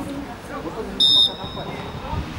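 A referee blows a short, sharp whistle outdoors.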